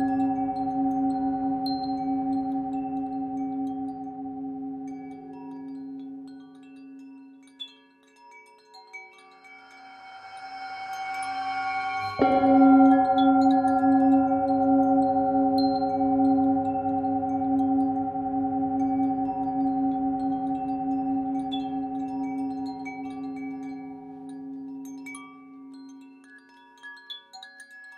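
A metal singing bowl rings with a deep, steady hum that swells, is struck again and slowly fades.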